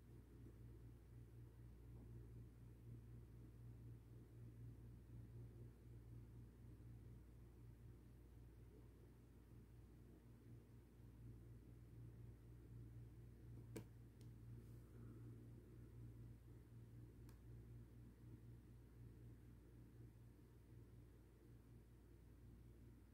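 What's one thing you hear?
A computer fan hums steadily nearby.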